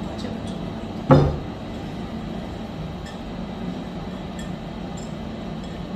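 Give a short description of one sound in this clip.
Liquid pours from a glass jug into a pot.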